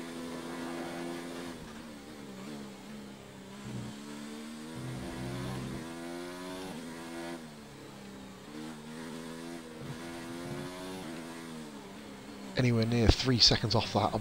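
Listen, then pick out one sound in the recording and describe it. A racing car engine whines, its pitch climbing and dropping as the gears shift.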